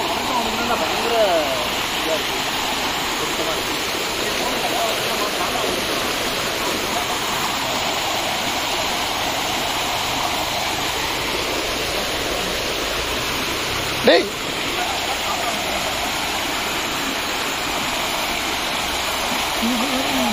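A mountain stream rushes steadily over rocks close by.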